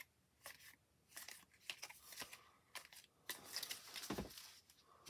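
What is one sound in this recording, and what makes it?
Cards rustle and slap as hands shuffle and lay them down.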